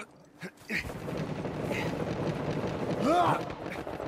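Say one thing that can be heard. A body thuds onto snowy ground.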